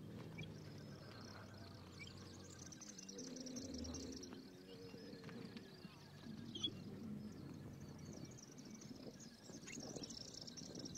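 Camels' hooves thud on dry ground as they run.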